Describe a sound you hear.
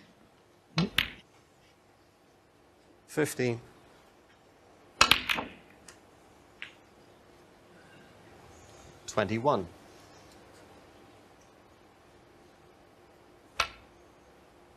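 Snooker balls click sharply against each other.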